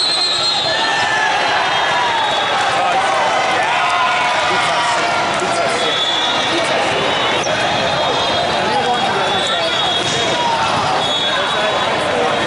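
A large crowd chatters steadily in a big echoing hall.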